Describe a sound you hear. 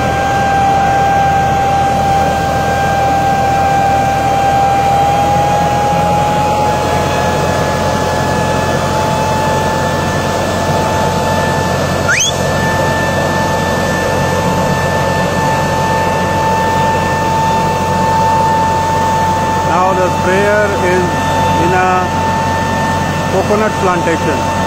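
A sprayer fan blows with a high steady whine and rushing hiss.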